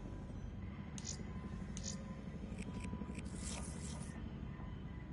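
Short electronic menu clicks sound several times.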